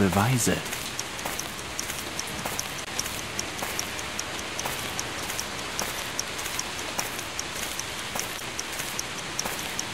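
Footsteps tread at a steady pace on a forest path.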